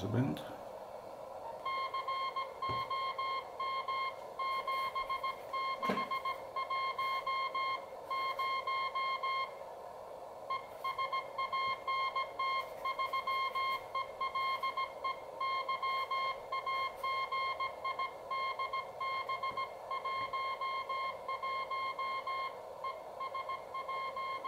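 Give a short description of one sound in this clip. A radio receiver hisses steadily with static.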